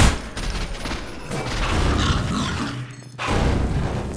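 A fiery blast booms.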